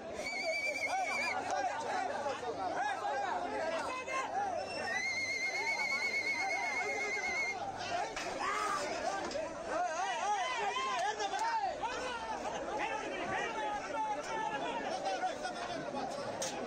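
A crowd of men shouts and cheers loudly close by, outdoors.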